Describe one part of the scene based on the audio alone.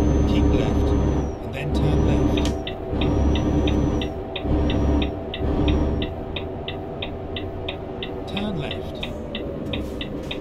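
A diesel truck engine drones while cruising on a motorway.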